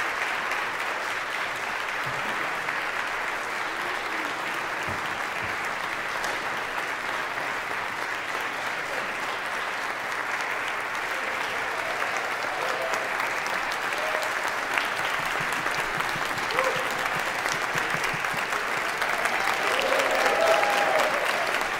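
A large choir sings in an echoing hall.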